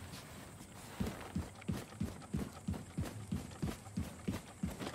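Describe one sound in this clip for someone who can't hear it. Footsteps run across a metal floor grating.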